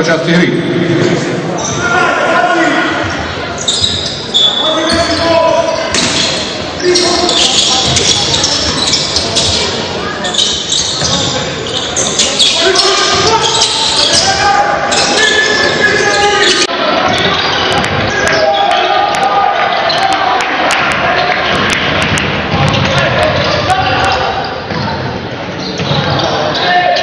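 A crowd of spectators cheers and chatters in an echoing indoor hall.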